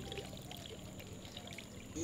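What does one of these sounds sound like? Water sloshes as a hand stirs fish in a bowl.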